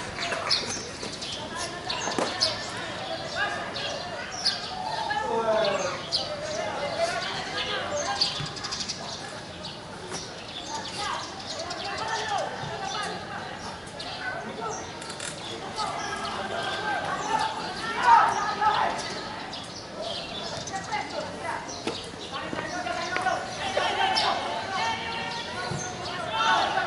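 Young men shout and call to each other from a distance across an open field.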